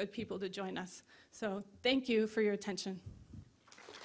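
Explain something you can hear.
A woman speaks through a microphone in a large hall.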